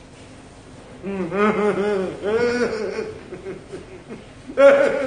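A man laughs loudly and heartily close by.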